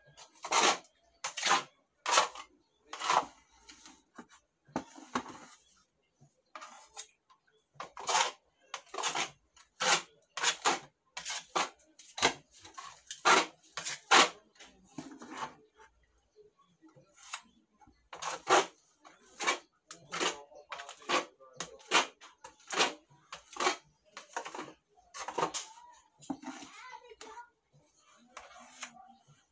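A metal putty knife scrapes and smears plaster across a wall in short, repeated strokes.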